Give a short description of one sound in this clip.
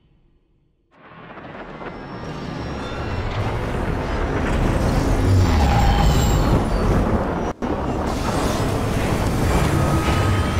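A large aircraft roars as it flies past.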